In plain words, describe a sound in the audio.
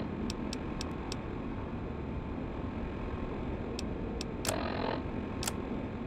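Short electronic clicks tick as menu items are selected.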